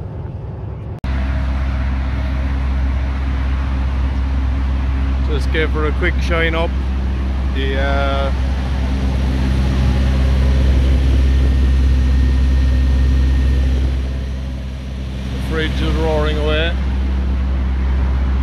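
A parked truck's engine idles with a deep, steady rumble close by.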